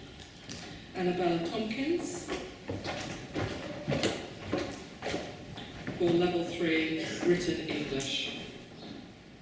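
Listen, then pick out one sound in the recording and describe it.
A woman reads out clearly through a microphone and loudspeakers in a large echoing hall.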